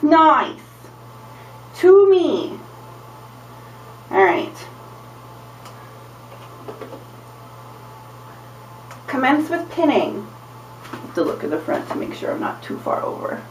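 A young woman speaks close by, in short bursts and then more steadily.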